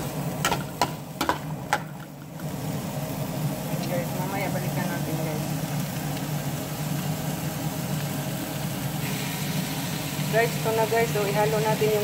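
Shrimp sizzle steadily as they fry in a hot pan.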